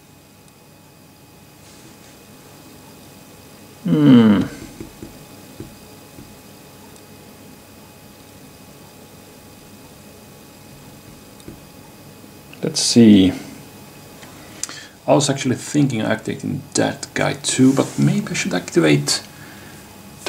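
Wooden blocks tap softly on a game board.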